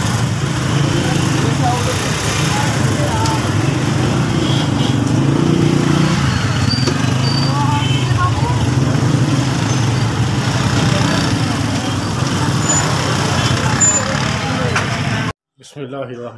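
A busy crowded street bustles with loud chatter and traffic noise.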